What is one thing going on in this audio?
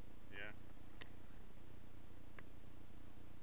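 A paddle knocks lightly against a plastic kayak.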